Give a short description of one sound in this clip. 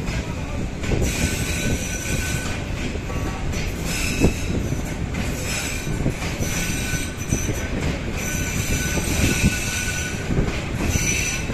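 Steel wheels squeal against the rails.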